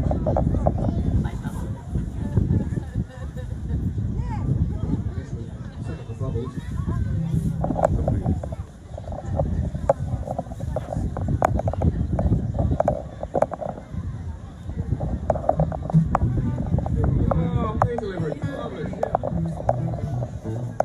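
Acoustic guitars play live through loudspeakers outdoors.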